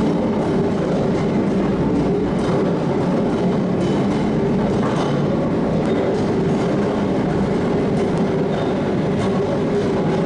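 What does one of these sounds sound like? Gears clank and rattle as their teeth mesh.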